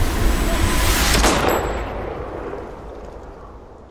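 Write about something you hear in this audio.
A gunshot rings out loudly and echoes away.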